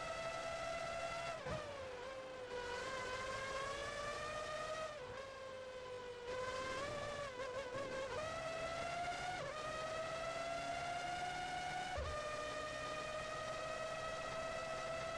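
A racing car engine screams at high revs, dropping in pitch with each gear change and climbing again.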